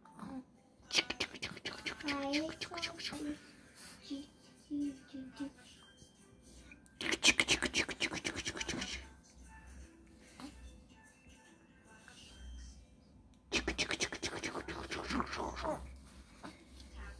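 A hand pats and rustles a baby's soft clothing.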